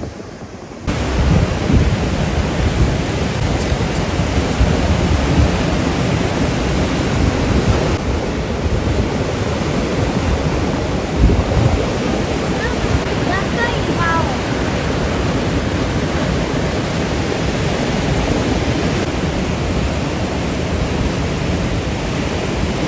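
Waves surge and wash over rocks close by.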